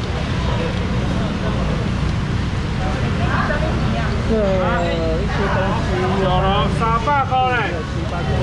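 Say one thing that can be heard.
Fish slap and rustle in a plastic basket.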